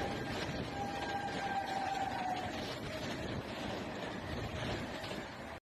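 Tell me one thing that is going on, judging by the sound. A train rushes past close by with a loud, steady rumble and clatter of wheels on rails.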